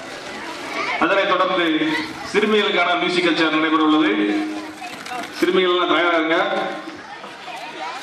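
A man speaks loudly, giving instructions.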